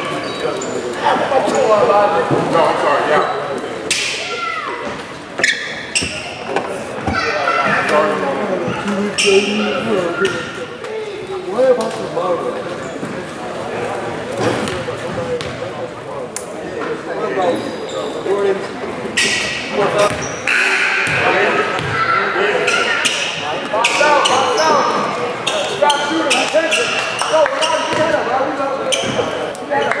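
A crowd of spectators chatters and calls out in a gym with lots of echo.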